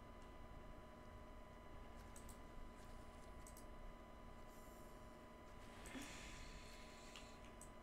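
A fishing reel clicks as a catch is pulled in.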